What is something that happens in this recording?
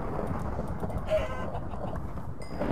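A pig grunts nearby.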